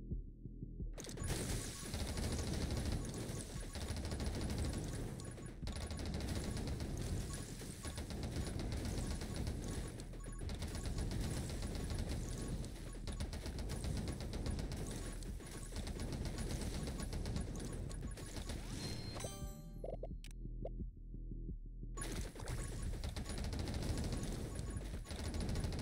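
Rapid electronic gunfire rattles on and on in a video game.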